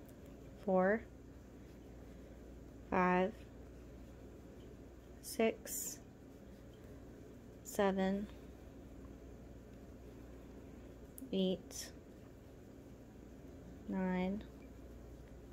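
A crochet hook softly rubs through yarn.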